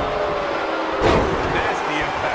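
A heavy body slams onto a wrestling mat with a thud.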